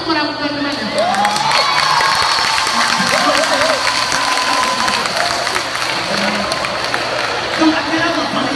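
An audience cheers and applauds.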